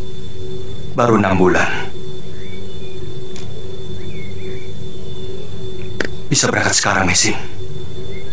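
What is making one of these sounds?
A man speaks in a low, calm voice, close by.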